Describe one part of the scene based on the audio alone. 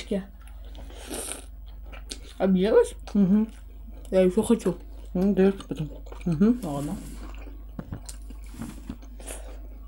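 Food crunches as people bite and chew.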